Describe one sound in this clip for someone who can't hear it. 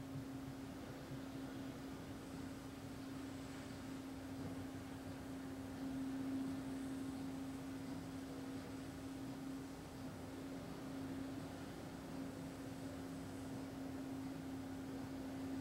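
A man chants a long, steady low tone close by.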